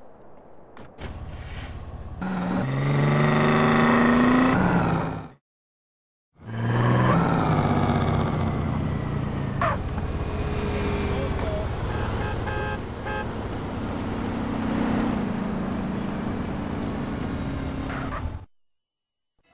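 A car engine runs and revs.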